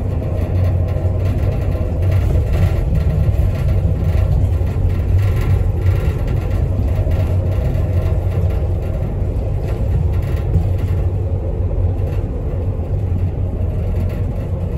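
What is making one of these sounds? A vehicle's engine hums low and steady from inside.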